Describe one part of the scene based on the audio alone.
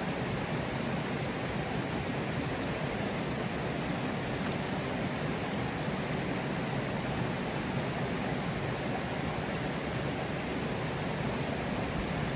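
A stream rushes steadily nearby.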